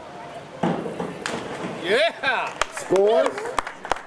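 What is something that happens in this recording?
A diver splashes into a pool.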